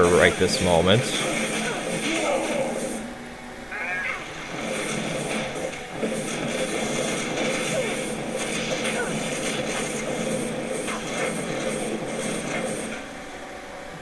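Fire spells roar and crackle.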